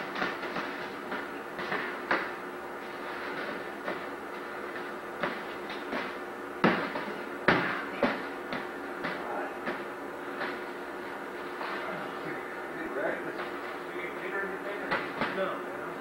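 Padded poles thump against each other in quick, sharp knocks in an echoing hall.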